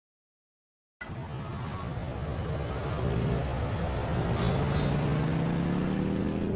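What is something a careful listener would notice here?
A motorcycle engine revs and rumbles, rising in pitch.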